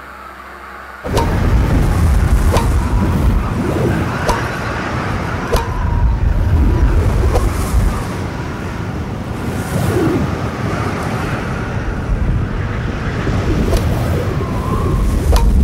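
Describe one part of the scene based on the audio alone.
Strong wind roars through a dust storm.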